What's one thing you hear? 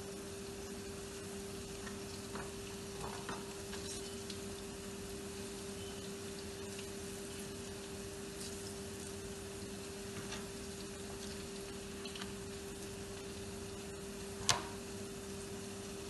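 Hands rustle and toss through cut cabbage leaves.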